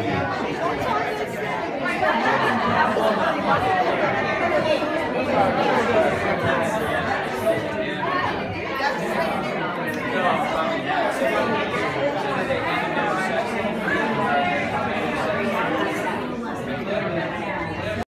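A crowd of men and women chatter in a large room.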